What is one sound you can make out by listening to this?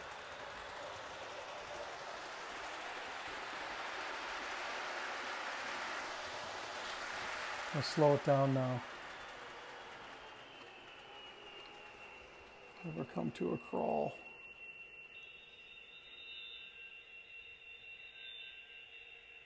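A model train rumbles along its track.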